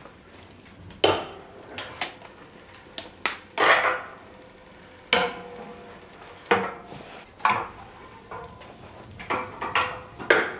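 Metal clanks and scrapes as a poker stirs burning logs.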